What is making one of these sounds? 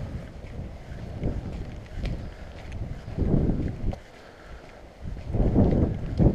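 Footsteps scuff on a rough path.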